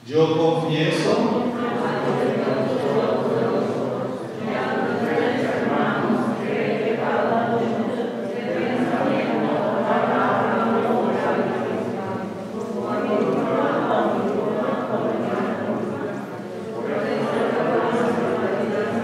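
A man speaks calmly through a microphone and loudspeaker in an echoing hall.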